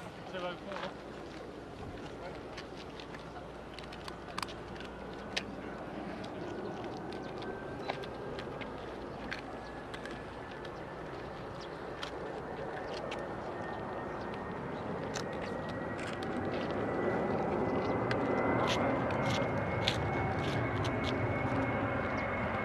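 A jet airliner's engines roar as it approaches overhead, growing louder.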